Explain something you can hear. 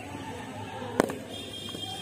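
A cricket bat sharply knocks a ball.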